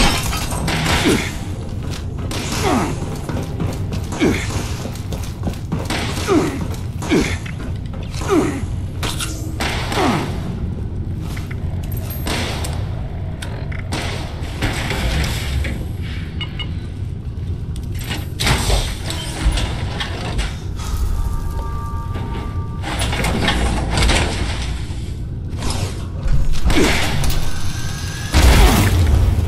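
Heavy metal footsteps clank steadily on hard floors.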